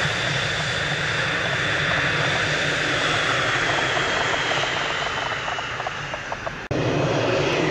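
A jet engine whines with a high, shrill tone.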